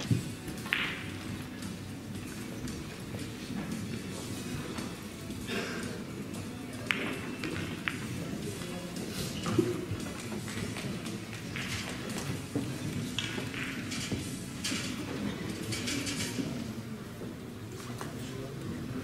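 Billiard balls click sharply now and then on a nearby table.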